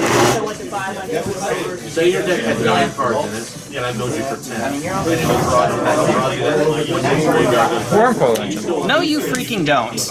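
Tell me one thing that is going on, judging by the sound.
Playing cards riffle and slap as they are shuffled by hand.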